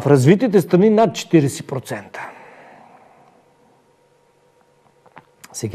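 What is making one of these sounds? A middle-aged man speaks with emphasis into a close microphone.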